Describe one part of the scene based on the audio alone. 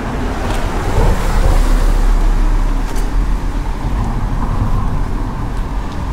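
A car engine hums as a car drives slowly down a narrow street.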